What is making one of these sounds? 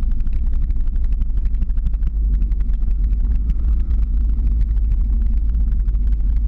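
Skate wheels roll and clatter over a rough road.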